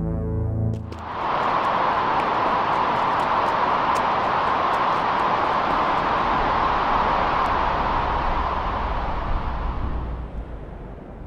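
Wind roars steadily in a sandstorm, then eases.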